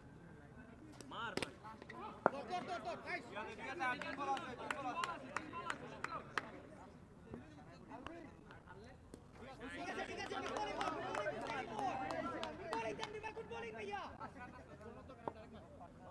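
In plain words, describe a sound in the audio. Hockey sticks clack against a ball and the court surface.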